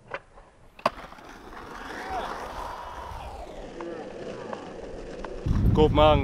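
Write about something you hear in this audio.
Skateboard wheels roll and rumble over pavement.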